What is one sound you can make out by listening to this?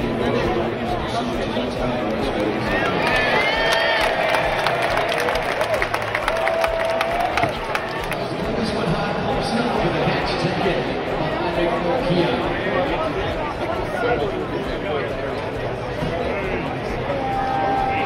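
A large stadium crowd murmurs and chatters steadily outdoors.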